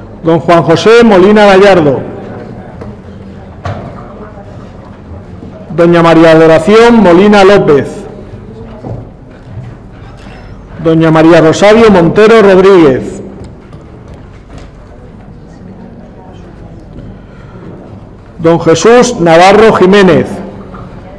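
A woman reads out loudly through a microphone in a large echoing hall.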